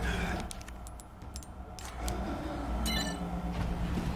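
An electronic lock beeps and clicks open.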